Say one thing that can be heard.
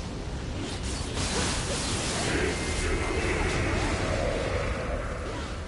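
Magic blasts burst with a rushing whoosh.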